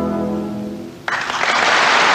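An orchestra plays a final sustained chord in a large hall, then stops.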